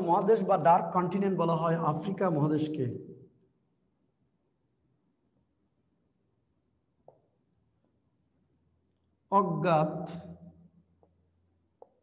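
A man speaks calmly, lecturing close by.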